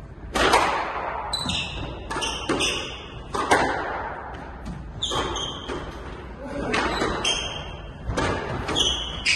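A squash ball smacks off rackets and walls in an echoing court.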